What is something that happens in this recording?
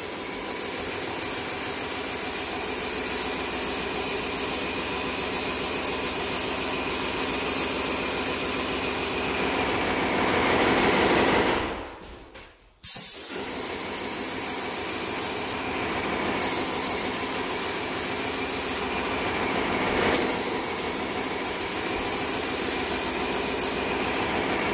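A paint sprayer hisses loudly in bursts.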